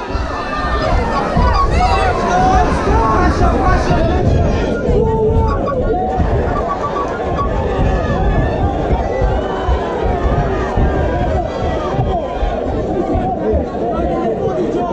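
A crowd of spectators shouts and cheers loudly in an echoing hall.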